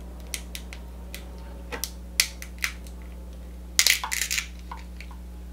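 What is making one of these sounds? Crab shells crack and snap in a young woman's hands.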